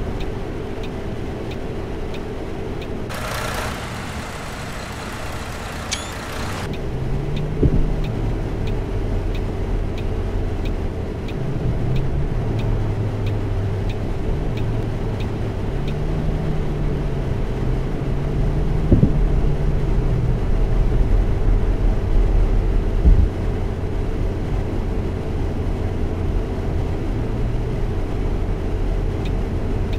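A bus engine hums steadily and changes pitch as it drives.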